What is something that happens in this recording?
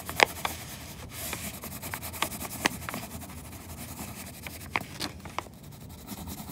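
A crayon scratches quickly back and forth on paper.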